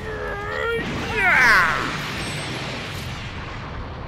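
A bright explosion booms.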